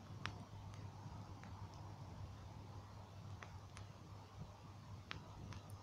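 A bonfire crackles and pops.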